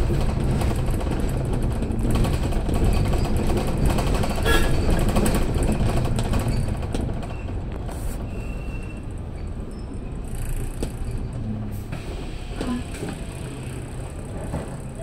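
A bus engine rumbles steadily from up close as the bus drives down a city street.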